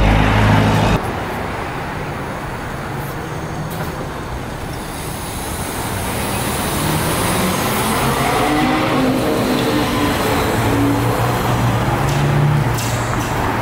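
An electric bus whines as it pulls away and drives past close by.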